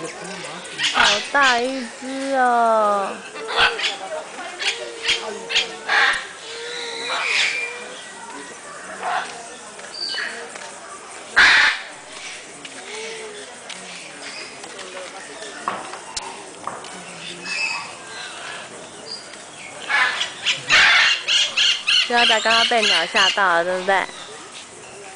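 Parrots squawk and screech loudly nearby.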